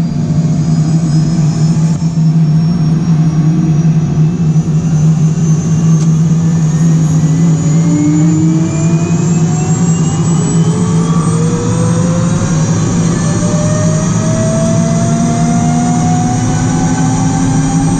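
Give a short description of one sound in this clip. A helicopter rotor thumps steadily overhead.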